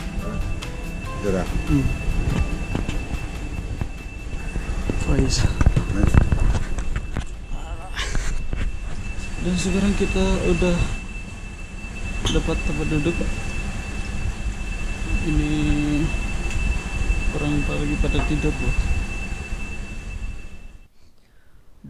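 A train carriage rumbles steadily.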